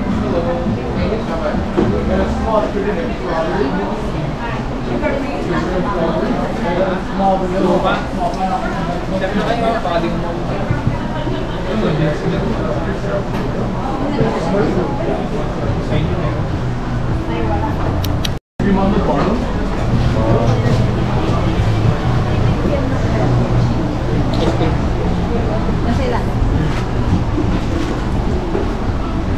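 A crowd of people chatter all around indoors.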